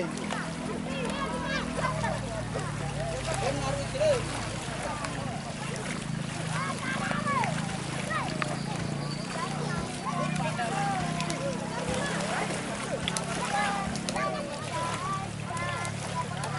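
Water splashes as a horse swims.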